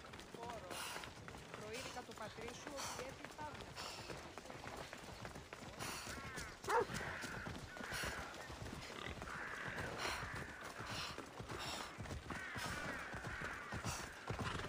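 Footsteps patter quickly on stone.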